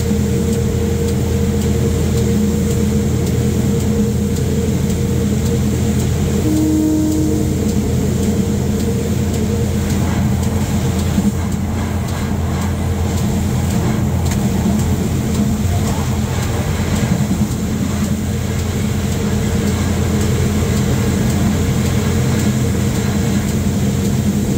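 Heavy rain beats against a train window.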